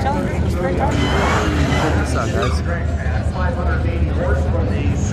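Tyres squeal and spin on the track.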